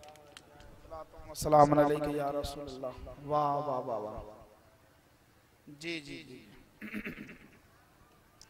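A man sings loudly through a microphone, in a reverberant space.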